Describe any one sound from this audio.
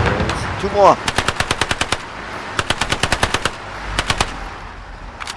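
A submachine gun fires rapid bursts close by.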